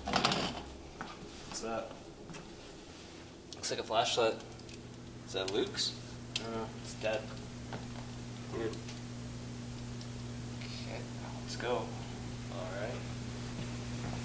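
A young man talks quietly nearby.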